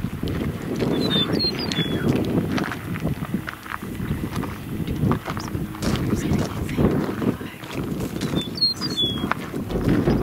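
A songbird sings a short, clear phrase nearby.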